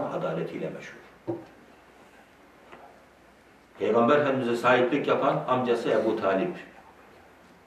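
A middle-aged man speaks calmly and earnestly into a close microphone, pausing between phrases.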